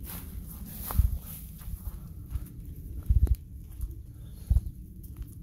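A dog's paws patter on a paved path.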